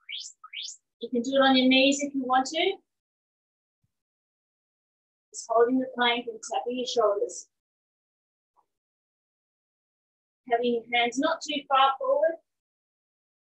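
A woman speaks in short instructive bursts, close to a microphone.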